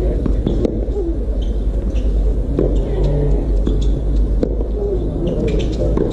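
A tennis ball bounces on a hard court.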